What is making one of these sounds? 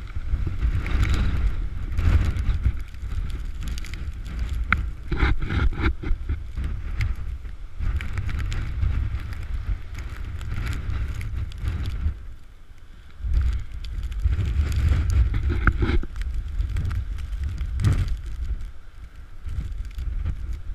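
Storm waves crash and surge against a sea wall.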